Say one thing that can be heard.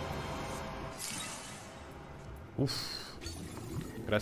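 Bright game sound effects whoosh and chime.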